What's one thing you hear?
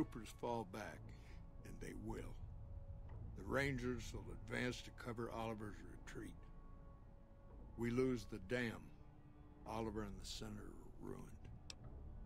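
A middle-aged man speaks calmly and gravely.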